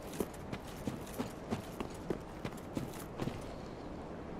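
Heavy armoured footsteps clink and thud at a steady walking pace.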